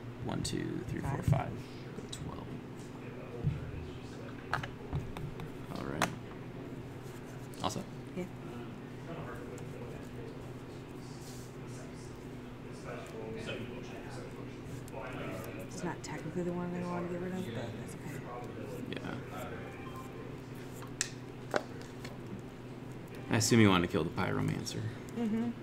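Playing cards tap and slide on a table mat.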